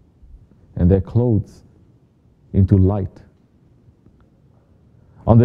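A man speaks slowly and solemnly, reading out in short phrases with pauses.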